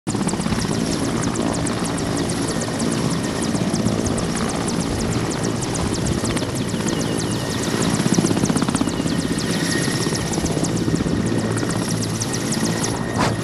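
A helicopter's turbine engine whines steadily.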